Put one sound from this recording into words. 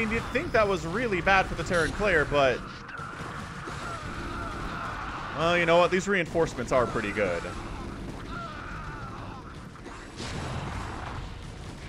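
Rapid gunfire rattles in a battle.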